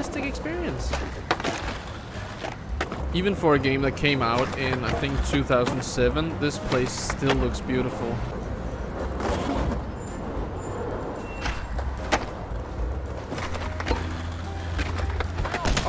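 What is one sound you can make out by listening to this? Skateboard wheels roll and clack on pavement.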